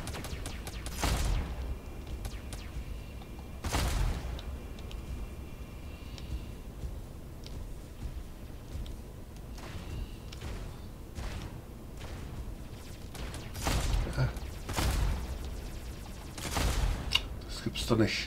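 Gunfire and blasts burst from a game.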